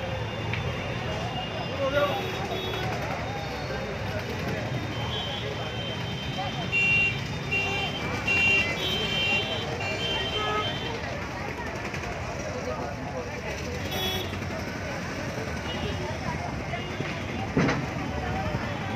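A crowd of men and women talks and shouts outdoors.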